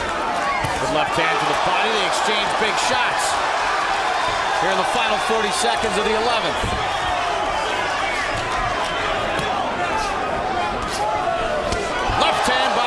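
A large crowd roars and cheers in a big echoing hall.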